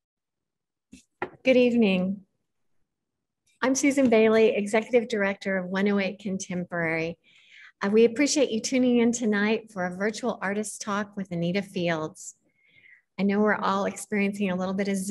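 A middle-aged woman speaks warmly and with animation over an online call.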